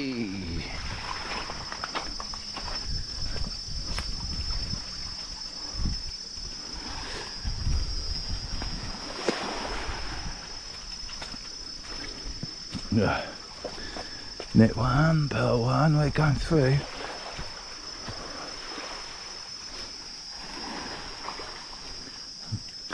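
Small waves lap gently against a shore.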